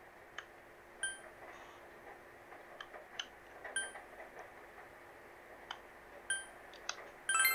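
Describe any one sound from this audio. Short electronic blips sound as a menu cursor moves.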